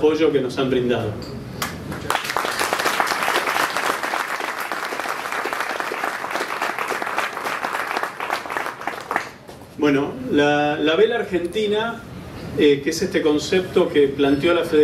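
An elderly man speaks calmly through a microphone in a large echoing room.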